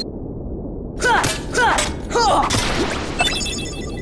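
A sword swooshes and strikes in quick blows.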